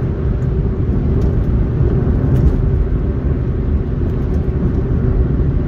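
A car's engine hums steadily as it drives along a road.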